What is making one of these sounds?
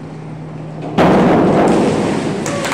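A diver splashes into the water in a large echoing hall.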